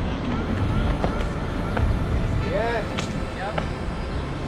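A skateboard clacks and grinds on a ledge.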